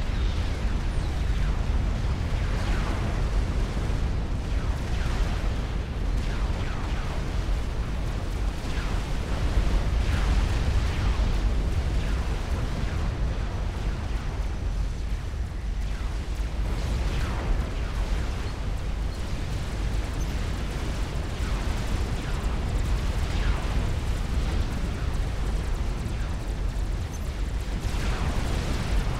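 Weapons fire with sharp zapping bursts.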